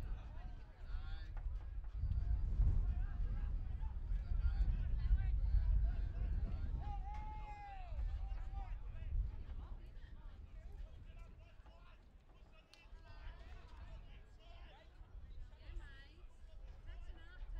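Men shout and call out in the distance outdoors.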